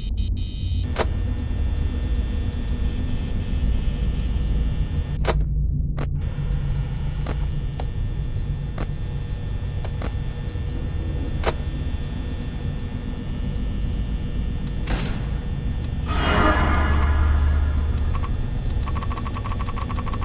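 Buttons click sharply now and then.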